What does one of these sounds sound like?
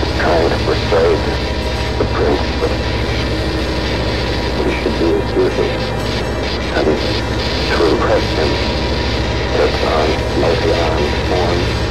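A young woman speaks quietly into a phone.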